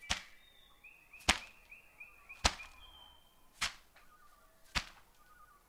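A skipping rope slaps the ground in a steady rhythm.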